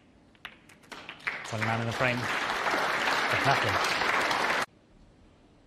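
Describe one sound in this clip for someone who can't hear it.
An audience applauds loudly.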